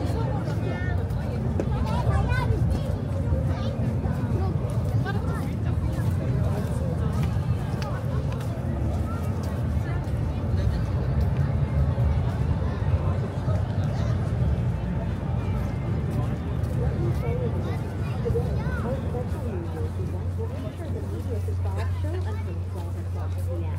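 A crowd chatters outdoors, with many voices of men and women nearby.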